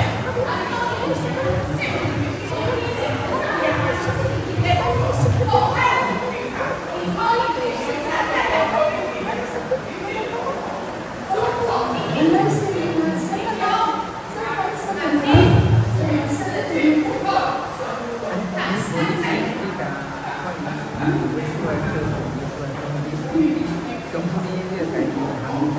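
A middle-aged woman talks nearby.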